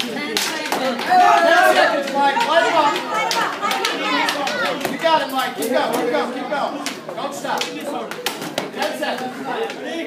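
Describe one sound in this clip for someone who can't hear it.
Several men talk and call out in an echoing hall.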